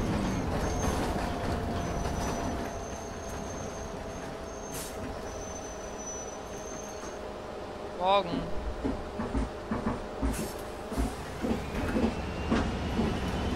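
A bus door opens and closes with a hiss.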